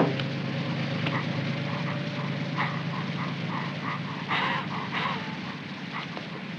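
A man pants and gasps close by.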